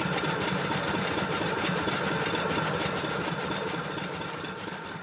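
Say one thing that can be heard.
A chaff cutter whirs and chops green fodder with a steady rhythmic rattle.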